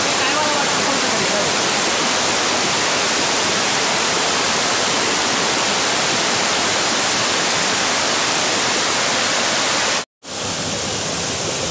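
Water rushes loudly over rocks in a fast stream.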